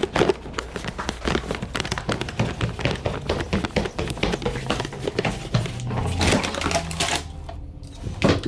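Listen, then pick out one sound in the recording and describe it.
Footsteps thud quickly up wooden stairs.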